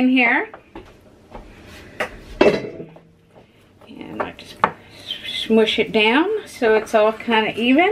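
A spatula stirs thick dough in a glass bowl.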